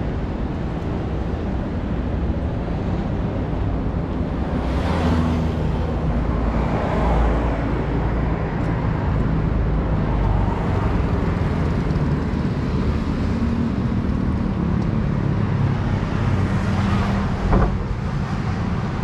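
Wind rumbles across a moving microphone.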